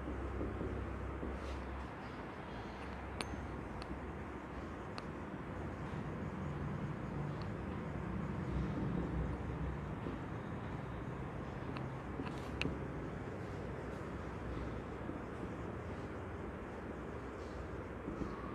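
A marker squeaks faintly across a whiteboard.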